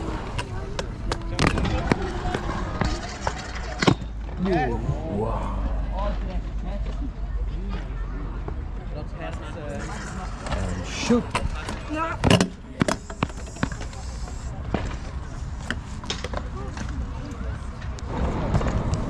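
Scooter wheels roll and rumble over concrete.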